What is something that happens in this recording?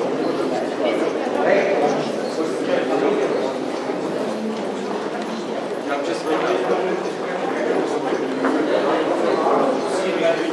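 A crowd of men and women talk and murmur nearby, echoing off hard walls.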